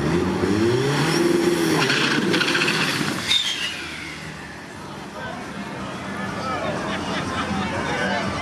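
A race car engine roars loudly, then fades into the distance as the car speeds away.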